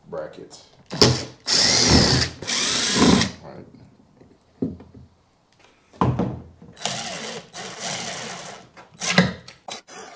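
A cordless drill whirs in short bursts, driving screws.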